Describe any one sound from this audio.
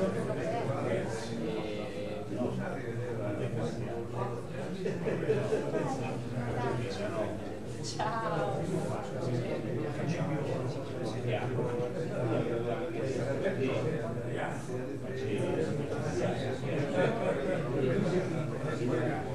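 A man speaks steadily into a microphone, heard through loudspeakers in an echoing room.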